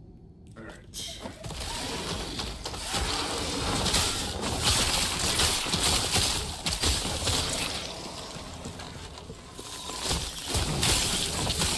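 Lightning spells crackle and explosions boom in a game.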